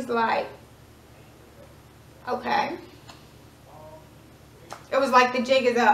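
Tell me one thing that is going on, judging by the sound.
A young woman talks close up, with animation, in short bursts.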